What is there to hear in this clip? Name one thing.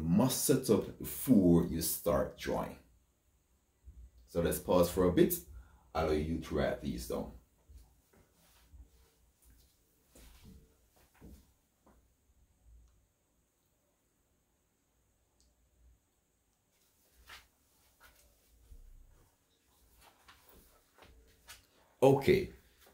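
A man explains calmly and close by, with pauses.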